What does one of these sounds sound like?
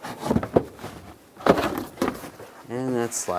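Plastic parts click and rattle as a hand pries and handles them.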